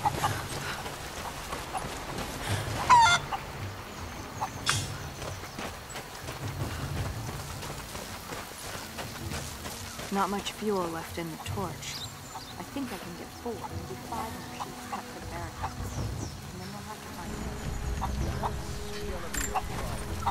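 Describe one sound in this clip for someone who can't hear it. Footsteps crunch on grass and stone paths.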